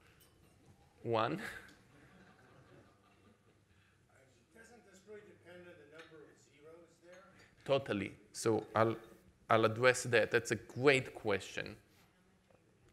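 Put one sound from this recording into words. A middle-aged man speaks with animation into a microphone in an echoing hall.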